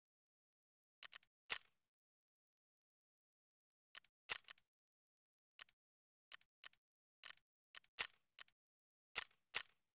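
Menu buttons click sharply, one at a time.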